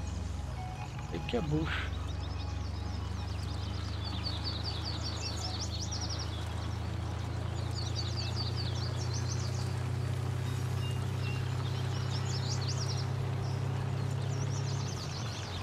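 A pickup truck's engine hums steadily as it drives along.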